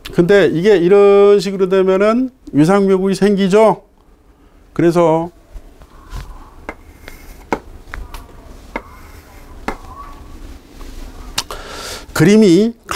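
A middle-aged man speaks with animation through a close microphone.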